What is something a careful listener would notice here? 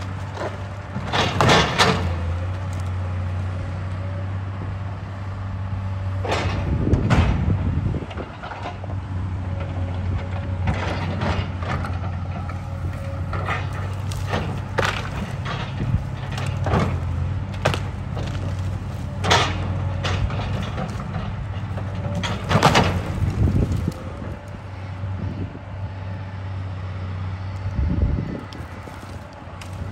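A diesel excavator engine rumbles.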